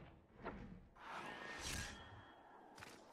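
A magical blast bursts with a whoosh.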